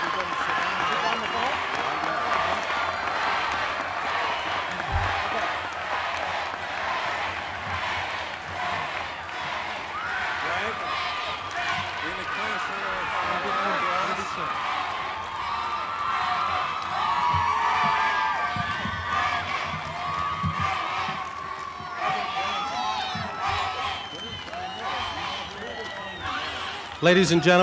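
A large outdoor crowd cheers and shouts steadily.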